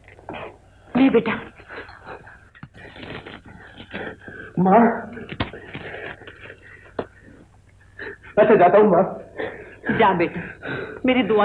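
A woman answers emotionally close by.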